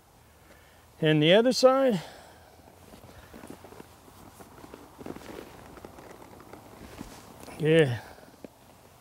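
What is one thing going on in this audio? A man speaks calmly in short phrases close to a microphone.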